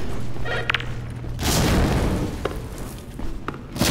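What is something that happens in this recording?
Shells click into a shotgun as it is reloaded.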